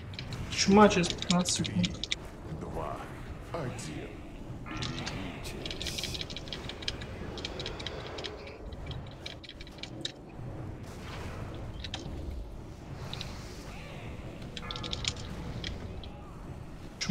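Magic spells crackle and whoosh amid the clash of a battle.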